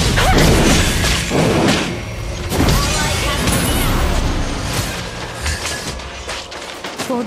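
Magic blasts and whooshing effects burst rapidly in a fast-paced battle game.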